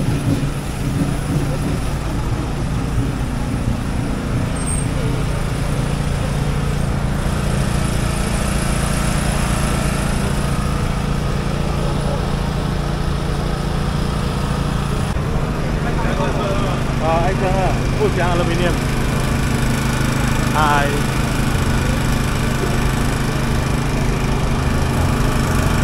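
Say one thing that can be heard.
A truck engine rumbles low as it pulls a parade float.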